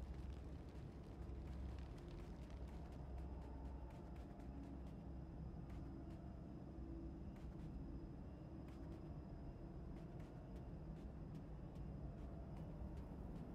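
Wind roars steadily and low.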